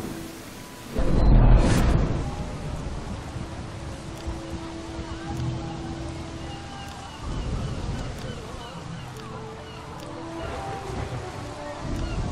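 Rain falls steadily on rough sea water.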